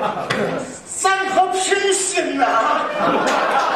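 An elderly man shouts into a microphone.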